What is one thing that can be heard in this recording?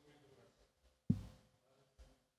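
A microphone thumps as a hand knocks against it.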